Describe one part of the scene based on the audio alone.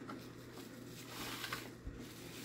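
Pages of a large book rustle as they turn.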